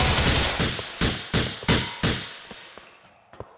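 Single rifle shots crack and ring out in a large echoing hall.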